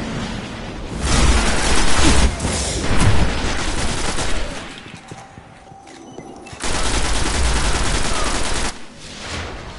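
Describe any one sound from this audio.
Rapid automatic gunfire bursts loudly in short, heavy volleys.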